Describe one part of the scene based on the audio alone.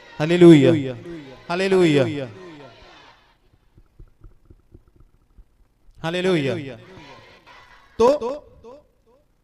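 A middle-aged man speaks slowly and with feeling into a microphone, his voice echoing through a loudspeaker.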